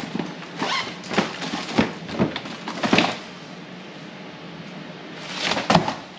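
Cardboard rustles and thumps nearby.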